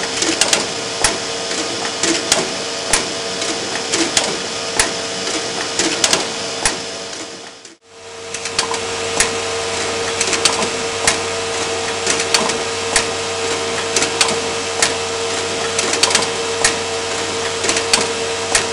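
A sewing machine runs with a steady hum and quick clicks.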